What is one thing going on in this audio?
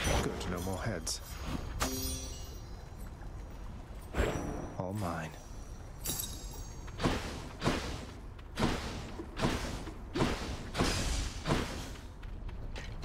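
Sharp strikes and fiery blasts ring out in quick succession.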